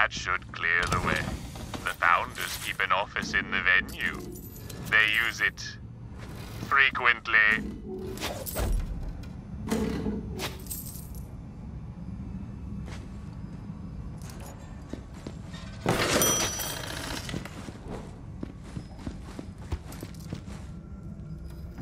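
Keyboard keys click and clatter under quick typing.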